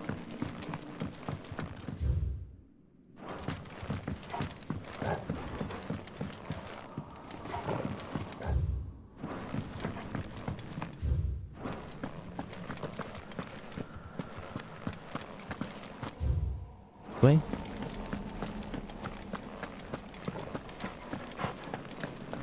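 Footsteps tread steadily on wooden boards and stone.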